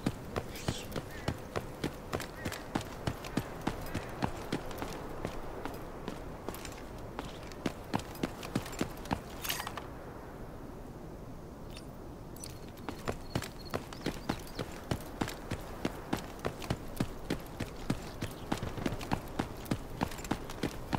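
Footsteps run on concrete in a video game.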